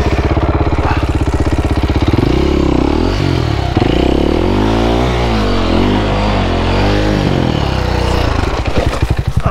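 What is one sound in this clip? A motorbike engine roars and revs up and down.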